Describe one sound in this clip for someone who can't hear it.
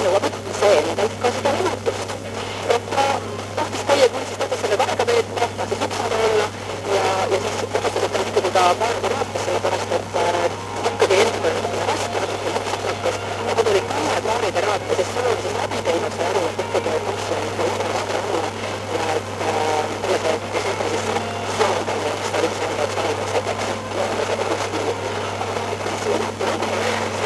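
A radio faintly plays a broadcast through the static.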